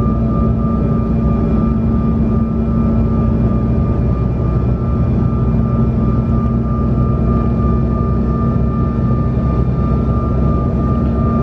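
Jet engines drone steadily with a low, even hum inside an airliner cabin in flight.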